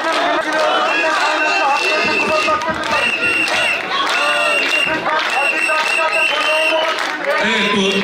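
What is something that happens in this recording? Women ulutate shrilly in a crowd.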